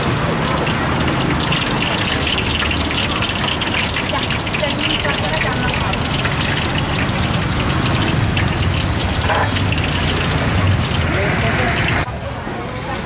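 Oil sizzles steadily as food deep-fries.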